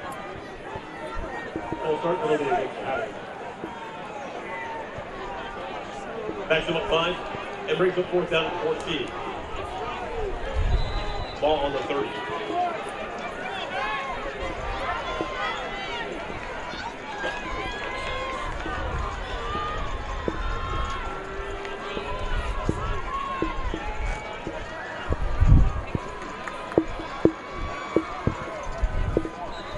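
A crowd murmurs and cheers in an open-air stadium.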